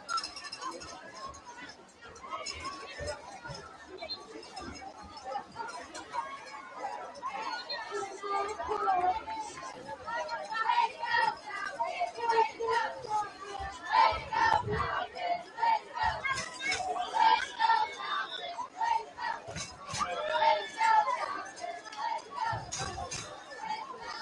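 A crowd chatters and shouts outdoors.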